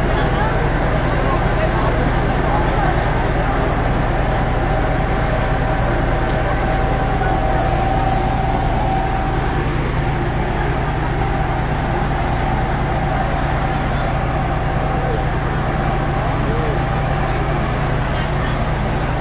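A fire truck engine hums steadily.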